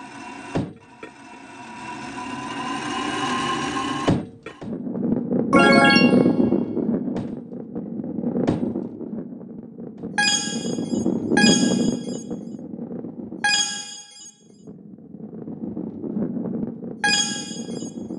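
A ball rolls along with a steady low rumble.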